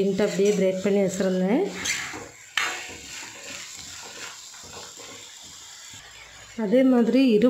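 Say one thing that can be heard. A metal spoon scrapes and stirs food in a pan.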